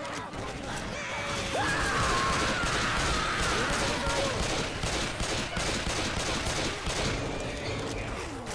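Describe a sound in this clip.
Rapid gunfire rattles on and on.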